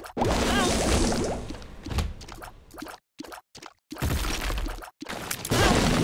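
Video game sound effects pop and splat in quick bursts.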